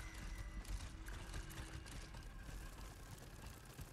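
Boots clank on metal ladder rungs.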